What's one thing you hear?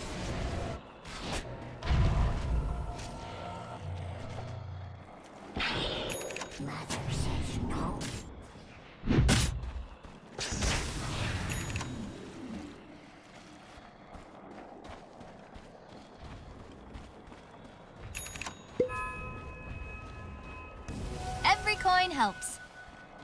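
Game sound effects of spells and blows burst out in quick succession.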